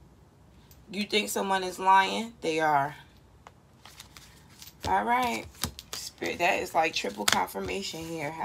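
Playing cards are shuffled and tapped against a table.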